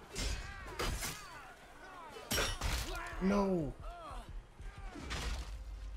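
Metal blades clash and strike in a fight.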